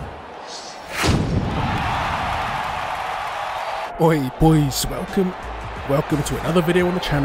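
A large crowd roars in a stadium.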